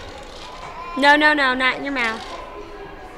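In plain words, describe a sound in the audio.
A toddler squeals and babbles close by.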